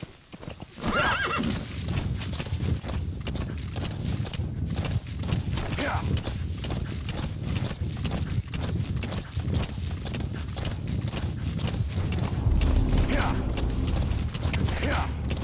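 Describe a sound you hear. Horse hooves gallop steadily over dry ground.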